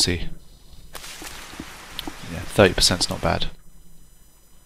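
Footsteps rustle through leafy undergrowth.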